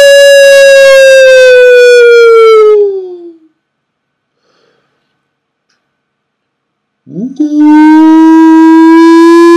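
A man sings loud, long, sustained notes close to a microphone, with a pause between them.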